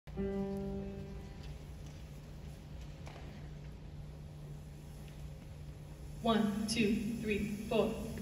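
A group of young voices sings together in a large echoing hall.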